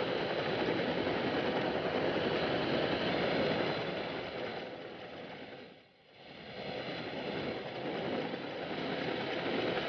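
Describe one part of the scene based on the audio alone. Aircraft engines roar as planes fly low over water.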